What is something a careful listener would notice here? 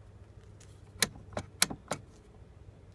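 A hand taps and knocks on a plastic door panel.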